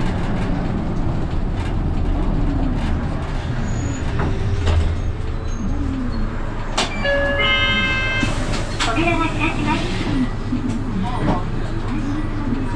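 A bus engine rumbles steadily while the bus drives along a road.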